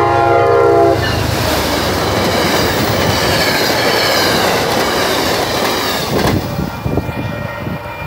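Train cars rush and clatter past on the tracks.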